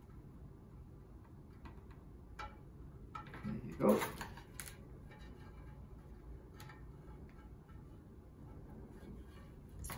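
Small plastic pieces tap against a ceramic pot.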